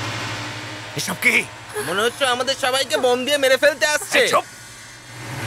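A middle-aged man shouts angrily.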